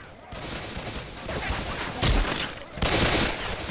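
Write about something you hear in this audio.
Zombies snarl and growl nearby.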